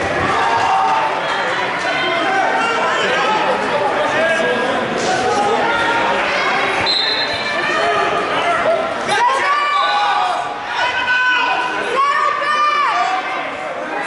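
Wrestlers thump and scuffle on a mat.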